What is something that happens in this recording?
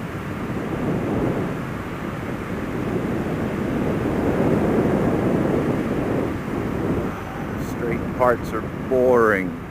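Wind rushes and buffets loudly past a moving rider.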